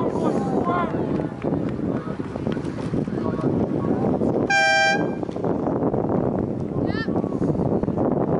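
Oars splash rhythmically in the water as rowing boats pass nearby.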